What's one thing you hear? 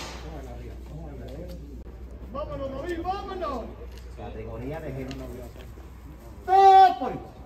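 Several adults talk quietly nearby outdoors.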